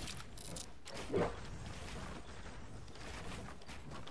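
A pickaxe swings and strikes wood.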